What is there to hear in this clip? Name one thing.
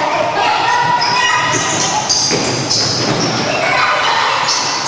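Sneakers squeak sharply on a hardwood floor in an echoing hall.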